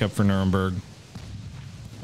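Heavy naval guns fire with a deep boom.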